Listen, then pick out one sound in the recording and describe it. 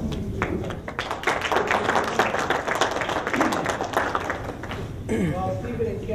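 A group of people applauds.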